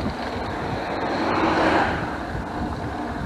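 A pickup truck drives past close by.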